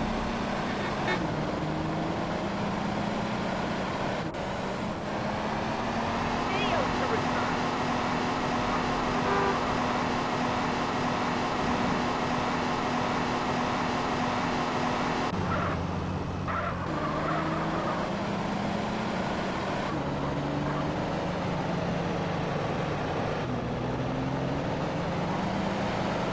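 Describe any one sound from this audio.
A car engine hums and shifts in pitch as the car drives along.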